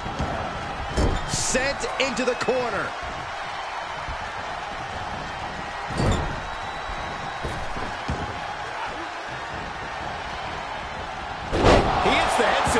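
Heavy thuds of bodies slamming onto a wrestling mat ring out.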